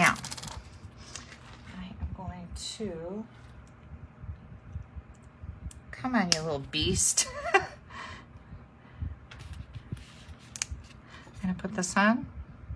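Paper rustles and crinkles softly as it is handled close by.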